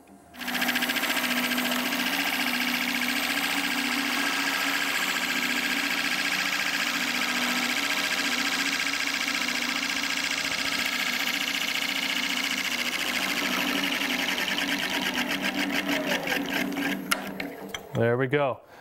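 A gouge scrapes steadily against wood spinning on a lathe.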